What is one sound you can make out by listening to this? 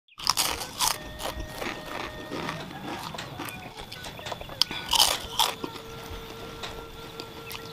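A man chews crunchy food loudly, close to the microphone.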